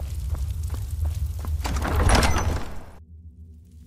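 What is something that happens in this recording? A heavy door creaks and thuds open.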